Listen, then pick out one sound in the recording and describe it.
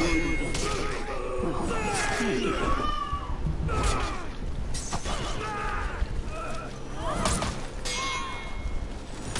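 Steel blades clash and clang in a fight.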